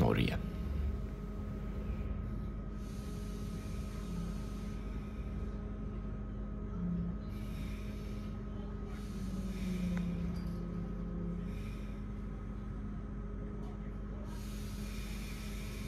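A train rumbles steadily along the tracks, with a low electric hum.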